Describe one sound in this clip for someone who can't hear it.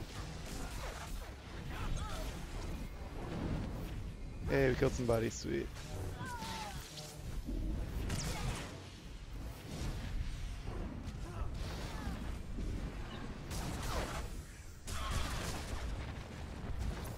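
Energy blades hum and clash in a fast fight.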